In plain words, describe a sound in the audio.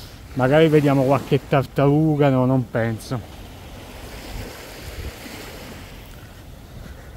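Small waves wash gently onto the sand.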